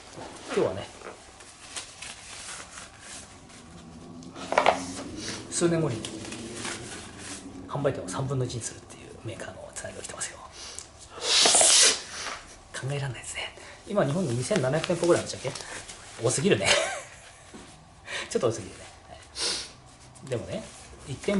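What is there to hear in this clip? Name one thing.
A rubber part rustles and squeaks in a man's hands.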